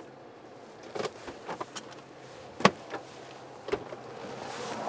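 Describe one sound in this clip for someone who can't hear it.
A car door clicks and thumps.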